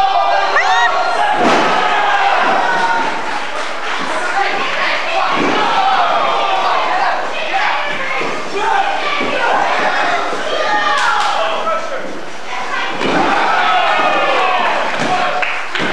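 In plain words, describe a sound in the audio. Bodies slam onto a wrestling mat with heavy thuds.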